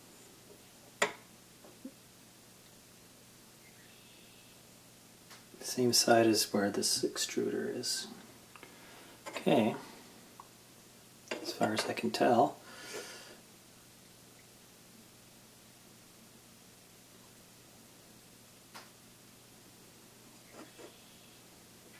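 A metal frame knocks lightly as it is handled.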